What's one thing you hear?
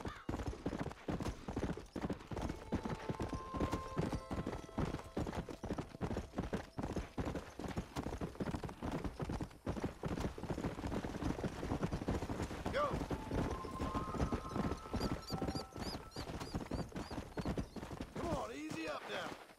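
A horse gallops steadily over a dirt trail with rapid, thudding hoofbeats.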